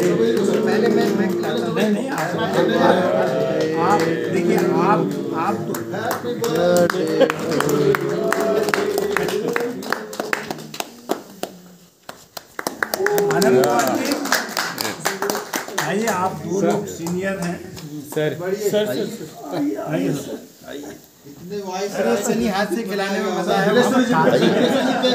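Several men talk and laugh together nearby.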